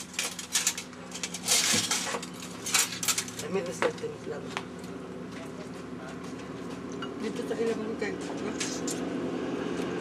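Spoons and forks clink against plates.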